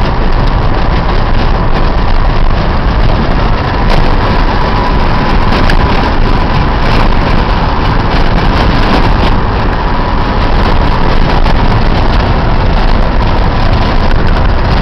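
A vehicle's engine hums steadily while driving.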